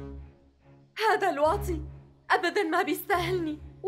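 A young woman speaks into a close microphone, sounding upset.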